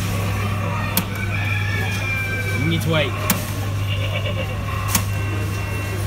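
Coins clink as they drop into a coin slot.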